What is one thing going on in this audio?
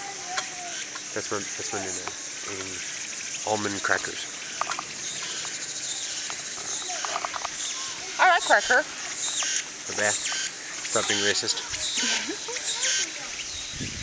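A young woman talks casually up close.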